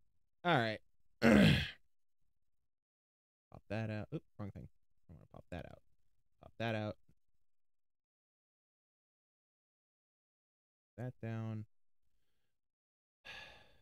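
A young man speaks close to a microphone in short bursts, with pauses.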